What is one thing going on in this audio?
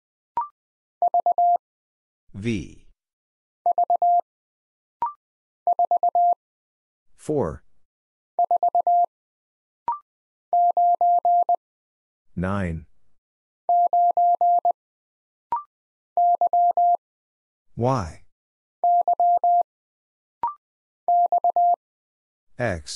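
A telegraph key taps out short, steady beeps of code in quick bursts.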